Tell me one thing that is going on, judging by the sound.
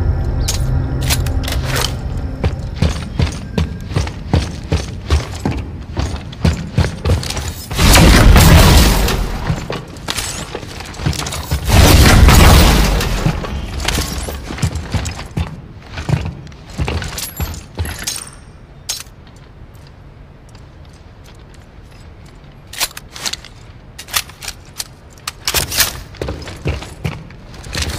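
Heavy boots clank steadily on a metal floor.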